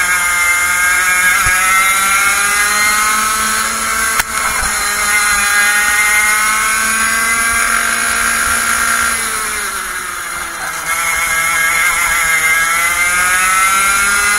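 A kart engine whines loudly up close, rising and falling in pitch as it speeds up and slows down.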